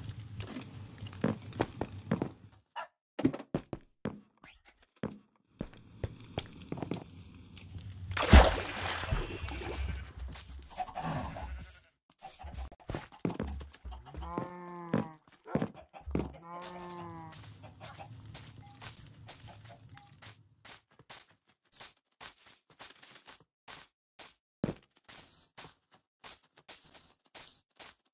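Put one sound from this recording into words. Footsteps tap steadily on wood and grass.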